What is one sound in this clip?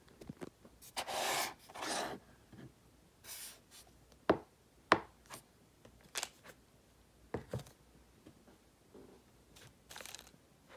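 Plastic containers rustle and scrape as hands turn them.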